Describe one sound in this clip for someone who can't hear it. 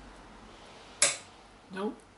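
Metal parts click against a wheel hub.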